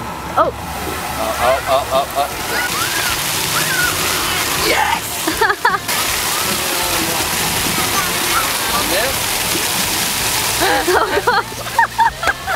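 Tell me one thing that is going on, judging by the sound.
Young children squeal and shout excitedly nearby.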